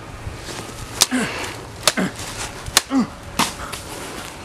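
Mock swords clack together.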